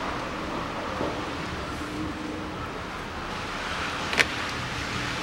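A gloved hand handles metal engine parts with light clicks and knocks.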